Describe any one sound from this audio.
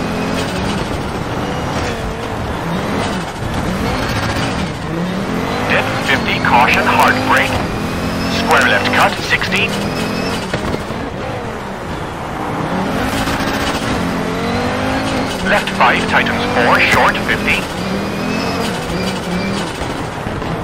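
A rally car engine roars and revs as it races along.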